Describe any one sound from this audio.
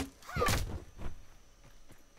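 An axe strikes the ground with a thud.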